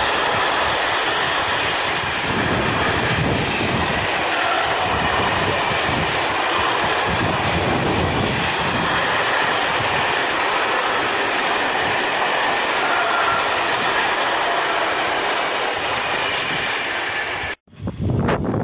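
A freight train rumbles and clatters past close by.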